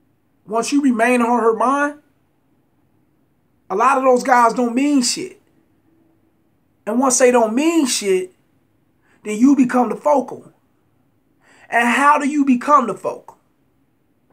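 A man speaks close to a phone microphone in short bursts with pauses, calmly and with emphasis.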